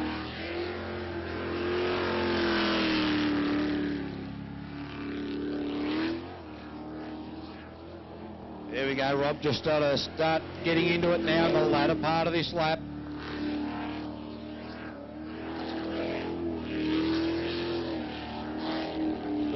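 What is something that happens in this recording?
Water spray hisses and splashes behind a speeding boat.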